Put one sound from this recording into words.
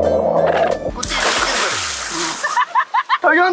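A man splashes into water.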